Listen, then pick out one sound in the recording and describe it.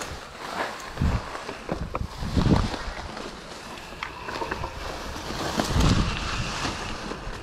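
Wind rushes past a bike rider outdoors.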